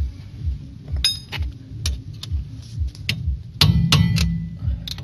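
A hand knocks metal parts against a steel steering knuckle.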